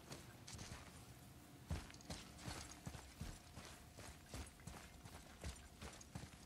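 Heavy footsteps thud quickly on stone.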